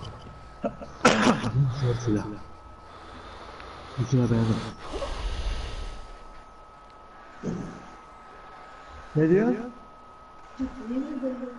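A man talks casually into a close microphone in short bursts.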